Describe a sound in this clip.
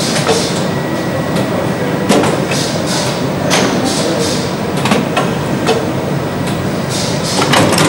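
Metal parts of a machine clack and knock sharply.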